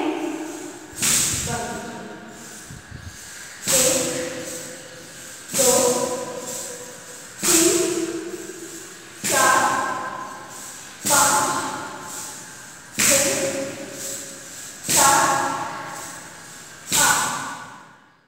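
Feet stamp rhythmically on a hard floor.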